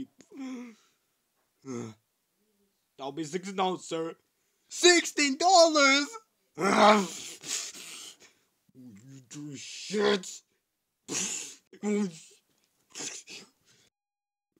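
A squawking, duck-like voice sputters angrily up close.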